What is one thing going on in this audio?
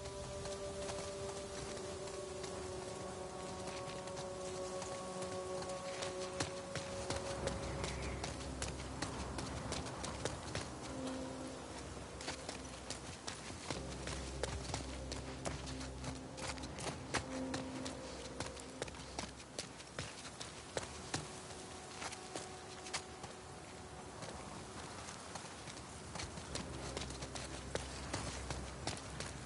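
Footsteps hurry over hard pavement.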